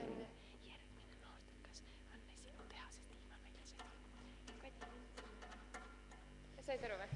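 A young woman talks quietly, close by.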